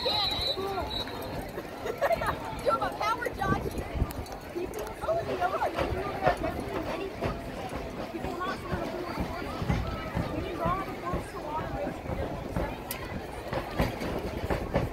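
A crowd chatters nearby, outdoors.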